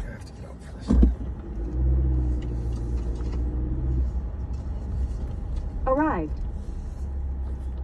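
A car engine starts and rumbles low as the car drives off.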